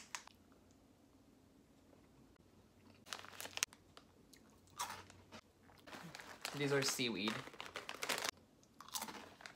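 A young man bites and chews a crunchy snack.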